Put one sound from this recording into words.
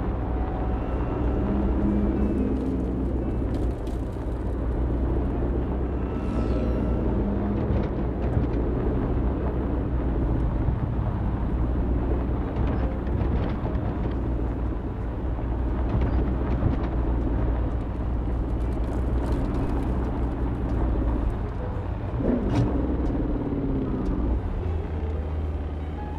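A car engine hums low and steady as the car drives.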